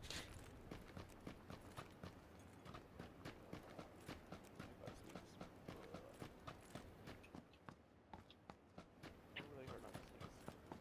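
Footsteps run quickly and steadily over hard ground.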